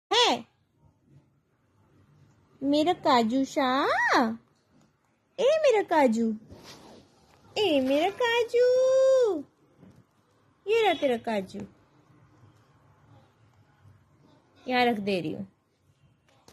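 A parrot chatters and squawks in short, voice-like bursts close by.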